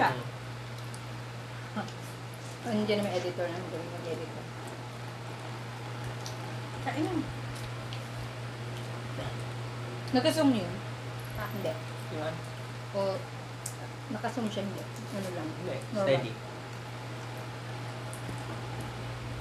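Shells crack as people eat with their hands.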